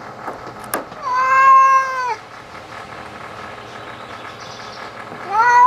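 A cat meows loudly in long, drawn-out cries close by.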